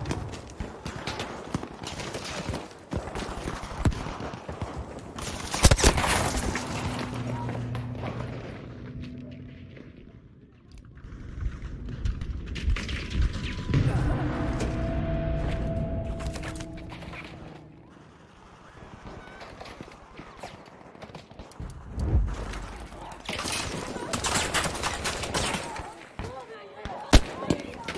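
Gunfire crackles in a battle.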